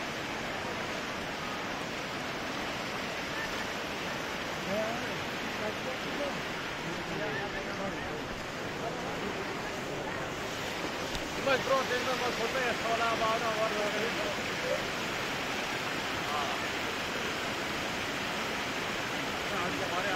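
Floodwater rushes and roars steadily.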